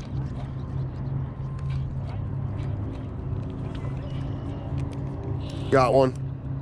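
Water laps and splashes gently against a boat.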